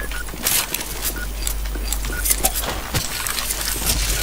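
A gun clicks as a weapon is switched.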